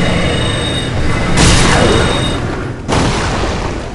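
A magic spell bursts with a loud whooshing crackle.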